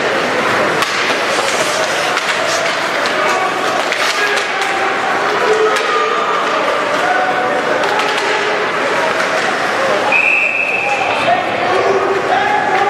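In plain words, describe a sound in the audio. A crowd of spectators cheers and shouts in an echoing rink.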